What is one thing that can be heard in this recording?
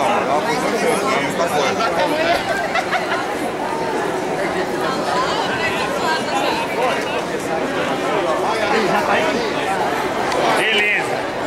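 A crowd of people chatters loudly all around, outdoors.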